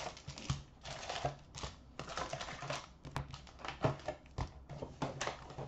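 Hands shuffle and knock cardboard boxes of card packs together.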